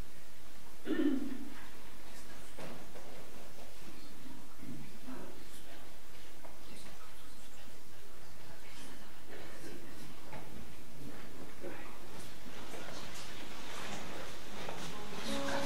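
People murmur quietly in a room with a slight echo.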